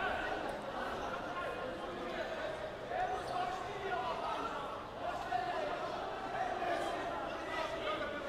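A crowd murmurs and chatters steadily in a large stadium.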